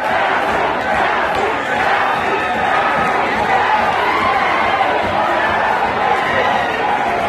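A crowd cheers and screams loudly in a large hall.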